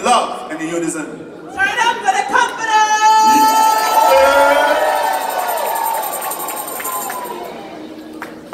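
A woman sings loudly through a loudspeaker in a large echoing hall.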